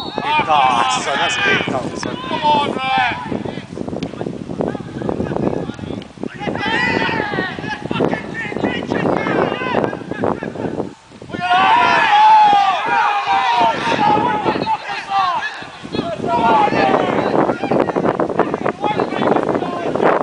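Men shout and call out to each other outdoors across an open playing field.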